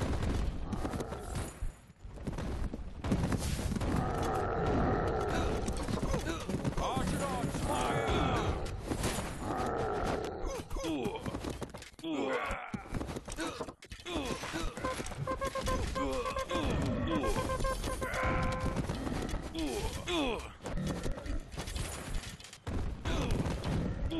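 Weapons clash and clang in a busy battle.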